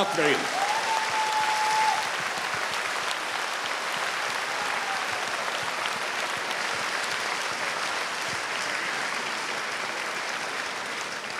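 A large audience applauds steadily in a big hall.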